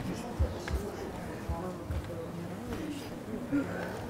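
A woman speaks quietly into a microphone.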